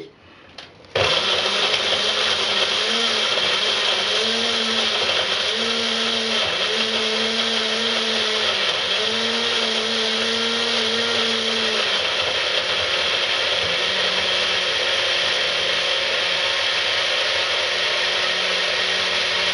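A small blender whirs loudly and steadily.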